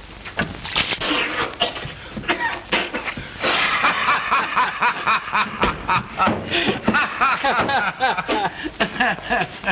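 A young man talks with amusement close by.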